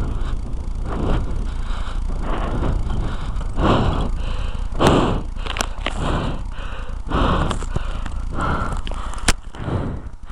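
Bicycle tyres crunch and rattle over loose, bumpy dirt.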